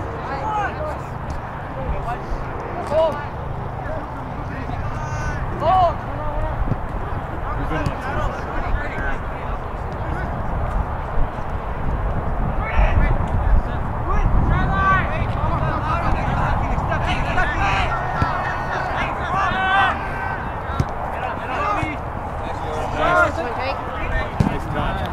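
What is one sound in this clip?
A soccer ball is kicked with dull thumps.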